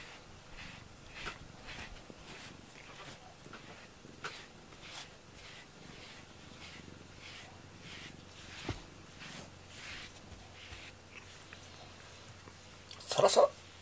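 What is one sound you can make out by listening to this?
A brush strokes through a cat's fur with soft rhythmic swishes.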